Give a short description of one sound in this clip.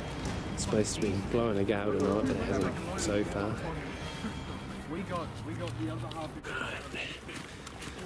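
Men talk excitedly in low voices close by.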